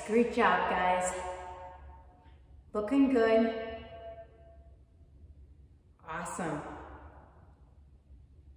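A young woman speaks loudly and with animation close by, with a short echo.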